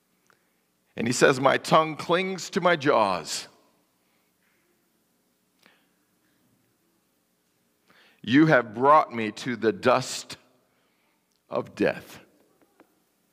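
A man speaks calmly through a microphone in a large echoing hall, pausing between phrases.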